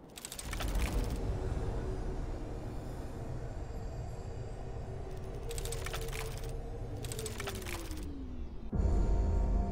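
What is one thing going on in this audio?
A magical portal hums and crackles with energy, then its hum slides down in pitch and cuts off.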